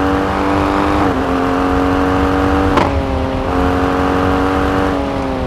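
A four-wheel-drive SUV engine drones at full throttle.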